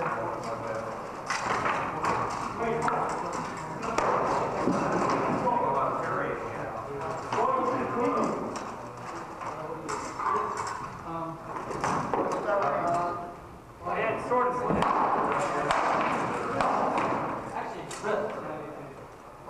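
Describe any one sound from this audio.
Wooden practice swords clack together in a large echoing hall.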